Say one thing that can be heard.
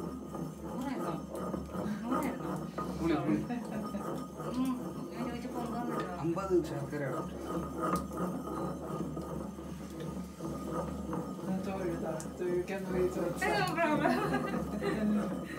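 A pestle pounds and grinds in a heavy ceramic mortar.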